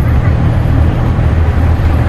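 A truck passes by closely in a tunnel.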